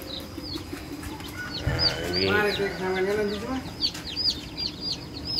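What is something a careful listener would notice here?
Many chicks cheep in high, rapid peeps close by.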